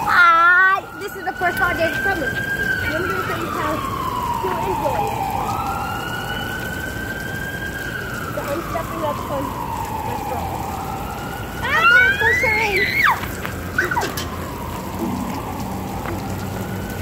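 Water sprays hard from a fire hydrant and splashes onto pavement.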